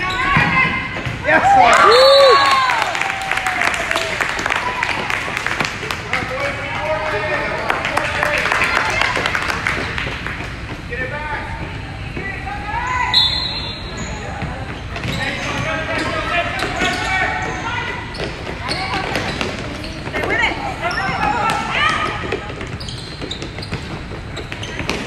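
A woman shouts encouragement excitedly.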